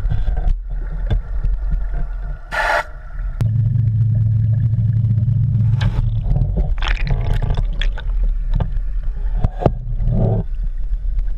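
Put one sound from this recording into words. Air bubbles gurgle and pop underwater.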